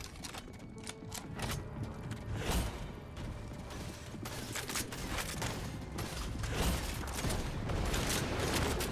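A weapon swings through the air with a sharp whoosh.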